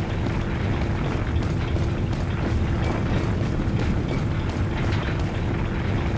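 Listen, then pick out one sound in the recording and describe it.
Heavy footsteps thud on dirt and wooden boards.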